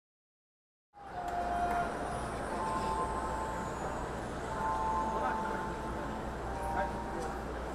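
A large crowd murmurs in the stands.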